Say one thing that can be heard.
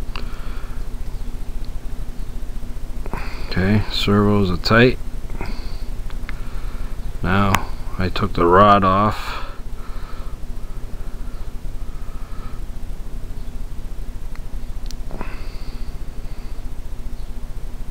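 Small plastic parts of a model helicopter click as fingers fit them together.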